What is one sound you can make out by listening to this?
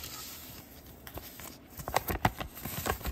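A plastic wrapper crinkles and rustles in someone's hands.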